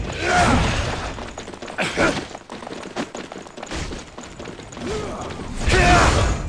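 Blades clash and strike in quick hits.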